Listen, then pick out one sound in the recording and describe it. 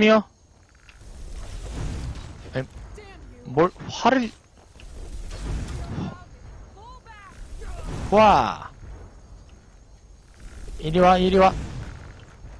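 Fire spells whoosh and roar in short bursts.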